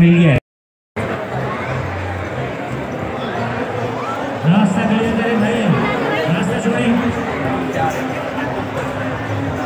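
A crowd of men chatters loudly all around.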